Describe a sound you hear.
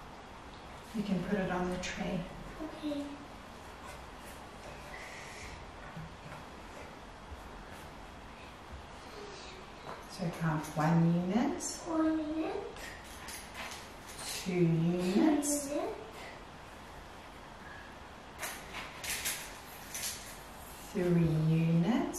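A young woman speaks calmly and gently nearby.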